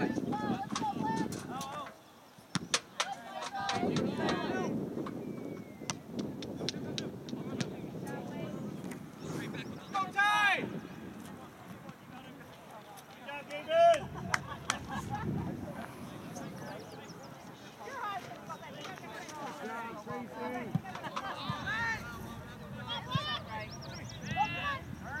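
Players shout and call out to each other across an open field.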